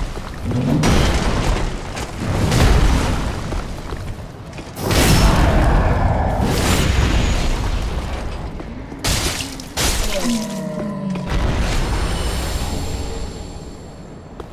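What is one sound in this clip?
Swords clash and strike loudly in a fight.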